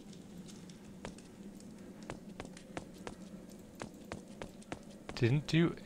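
Footsteps tap steadily on a stone floor.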